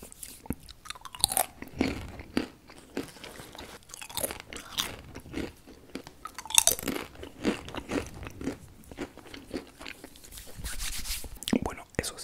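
A young man crunches crisps close to a microphone.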